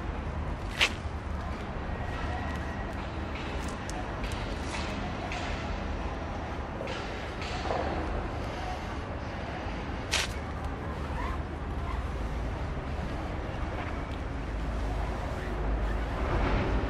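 A cloth rubs and wipes against a rubber tyre.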